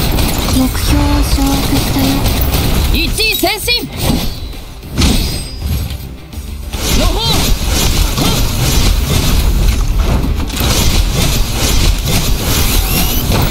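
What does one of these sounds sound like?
Energy blasts crackle and explode loudly.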